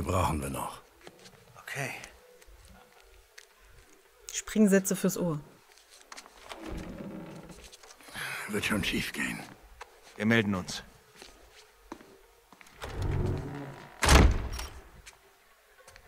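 A middle-aged man speaks in a low, calm voice close by.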